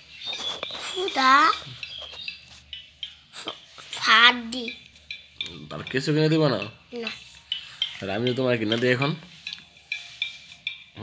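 A young child talks close by in a high voice.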